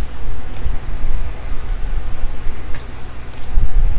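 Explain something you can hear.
Playing cards slide and rustle across a table.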